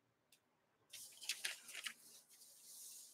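Paper sheets rustle softly as they are laid down.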